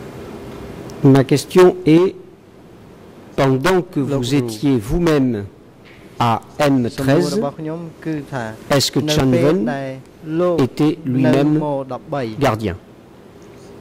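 A man speaks at length into a microphone in a calm, measured voice.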